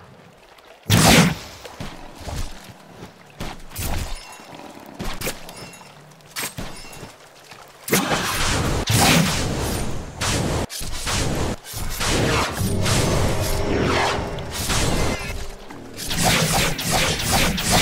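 Magic spells burst with loud whooshing blasts.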